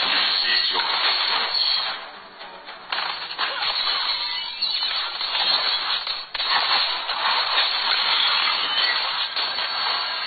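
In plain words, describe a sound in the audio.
Game combat effects clash, whoosh and crackle in quick bursts.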